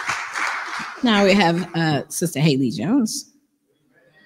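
A woman speaks with animation through a microphone.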